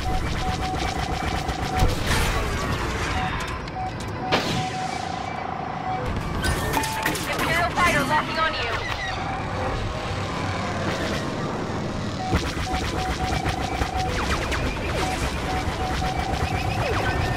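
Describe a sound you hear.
A warning tone beeps in a repeating pattern.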